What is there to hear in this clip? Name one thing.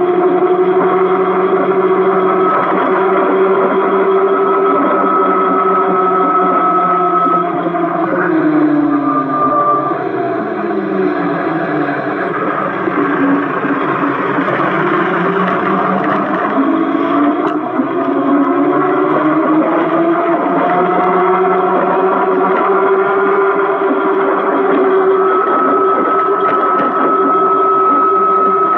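An electric scooter motor whines steadily, dropping in pitch as it slows and rising again as it speeds up.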